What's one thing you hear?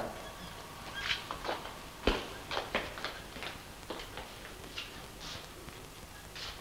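Footsteps tap softly on the floor.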